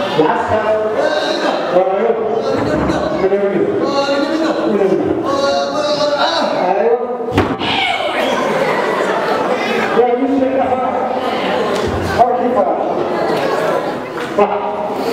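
A young man speaks with animation through a microphone and loudspeaker in a large echoing hall.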